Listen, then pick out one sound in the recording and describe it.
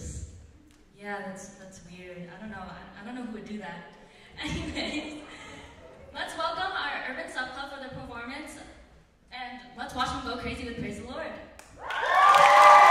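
A young woman speaks with animation into a microphone over loudspeakers in a large hall.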